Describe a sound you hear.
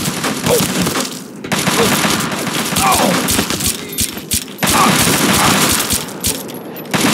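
Guns fire in loud rapid bursts.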